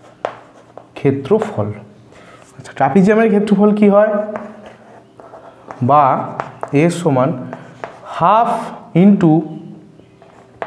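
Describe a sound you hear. A man speaks steadily, explaining, close by.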